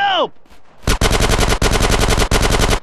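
A gun fires rapidly in bursts.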